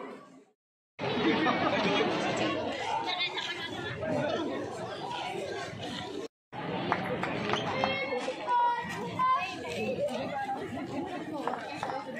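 A large crowd of men and women chatters outdoors.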